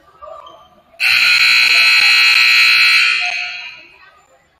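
A referee's whistle blows loudly.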